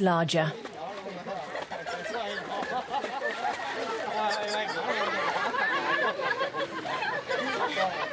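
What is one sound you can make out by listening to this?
A child splashes while swimming in water.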